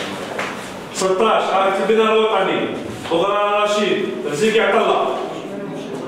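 A man reads out loudly in a room.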